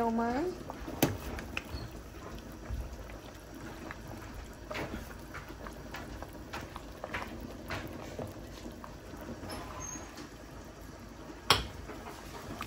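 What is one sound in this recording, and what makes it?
A metal ladle clinks against a metal pot.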